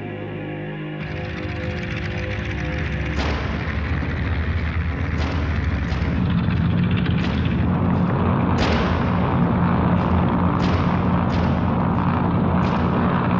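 A small plane's propeller engine starts and roars steadily louder.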